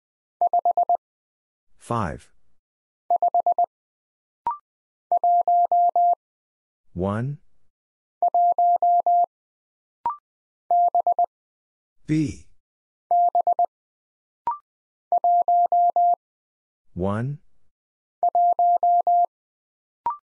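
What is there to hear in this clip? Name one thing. Morse code beeps in short, steady bursts of a single high tone.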